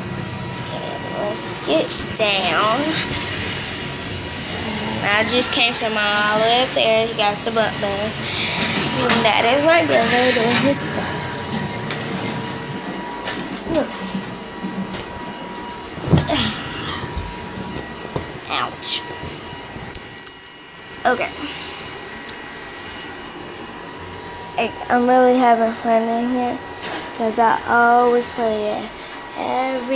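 A young girl talks and sings close to a phone's microphone.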